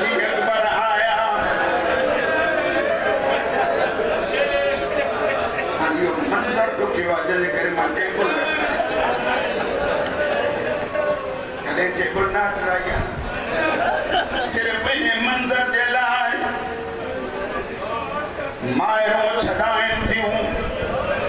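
A middle-aged man recites loudly and with emotion through a microphone, echoing in a hall.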